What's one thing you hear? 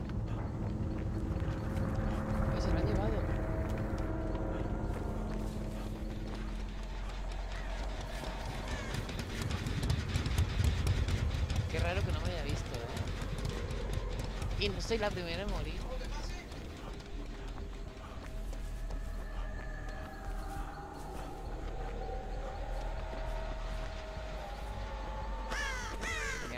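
Footsteps run quickly over grass and leaves.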